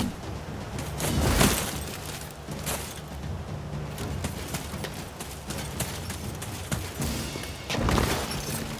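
Armour clinks and rattles with each stride.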